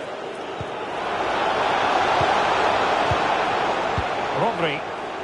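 A stadium crowd swells into a loud roar.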